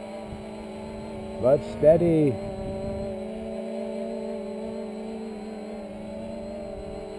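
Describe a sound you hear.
A drone hums steadily as it hovers overhead.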